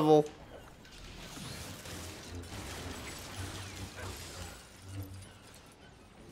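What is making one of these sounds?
A lightsaber hums and swooshes as it swings.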